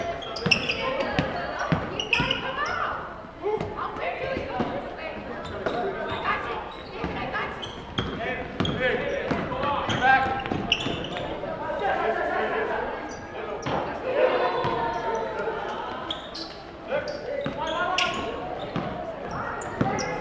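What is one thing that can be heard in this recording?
Young players and spectators shout and call out in an echoing gym.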